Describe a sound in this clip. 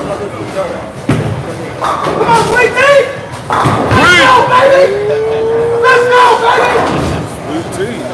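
Bowling pins crash and clatter.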